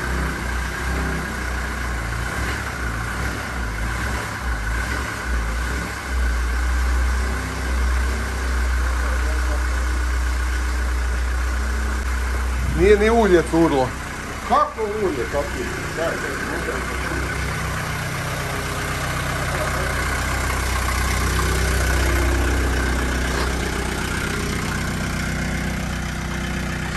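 A van engine idles with a steady low rumble.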